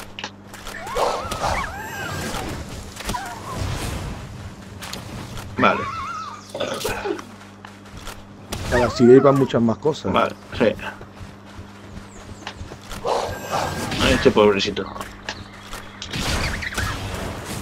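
A bow twangs as arrows are shot.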